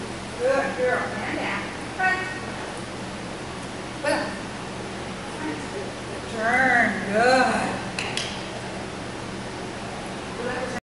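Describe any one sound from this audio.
A woman talks to a dog in a lively, encouraging voice in a large echoing hall.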